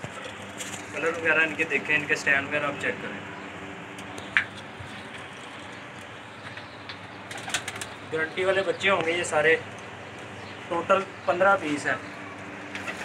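Pigeons coo in short bursts close by.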